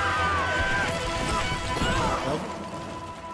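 A wicker basket crashes heavily onto the ground.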